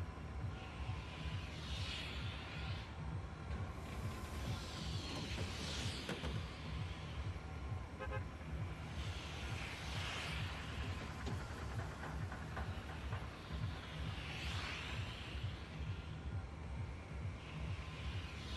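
Wind rushes past in slow swells that rise and fall.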